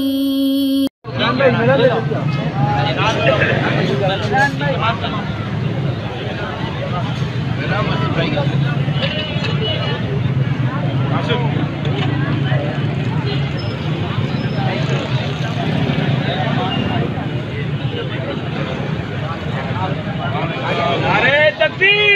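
A crowd of men talks and shouts close by, outdoors.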